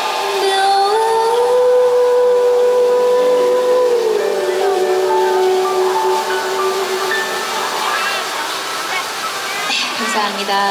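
A keyboard plays chords.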